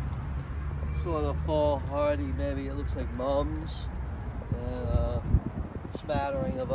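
A man speaks calmly and casually, close by.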